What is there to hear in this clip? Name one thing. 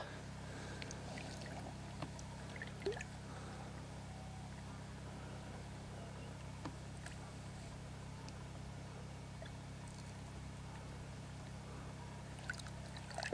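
Water splashes softly as a fish is let go.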